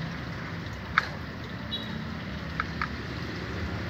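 A bird's beak taps against a plastic cup.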